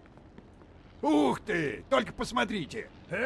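A man speaks with an angry tone.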